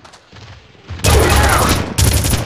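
A monstrous creature cries out.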